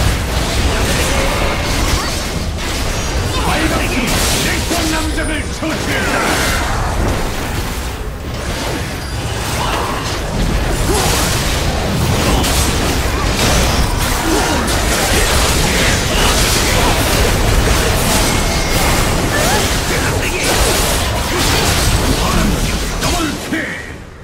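Game spell blasts and weapon clashes crackle in a fast, busy battle.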